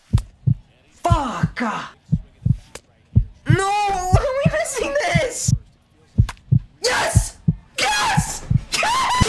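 A young man speaks with excitement close to a microphone.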